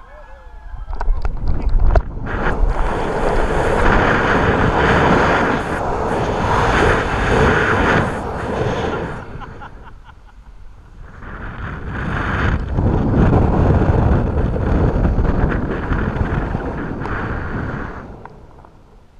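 Wind roars loudly past during a fast fall.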